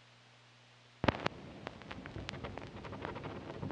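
Vinyl surface noise crackles and pops from a record player.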